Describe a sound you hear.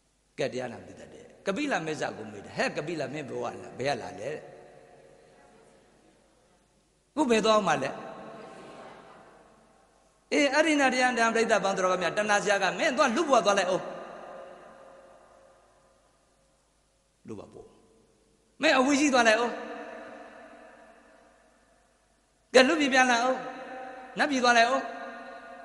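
A man speaks with animation into a microphone, in bursts that ring out in a reverberant hall.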